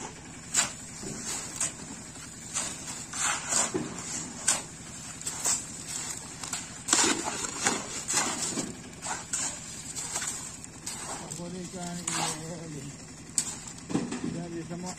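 Shovels scrape and slap through wet concrete outdoors.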